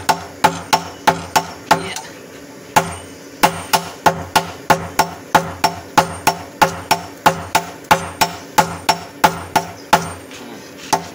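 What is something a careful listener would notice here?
Hammers strike hot metal on an anvil in a quick ringing rhythm.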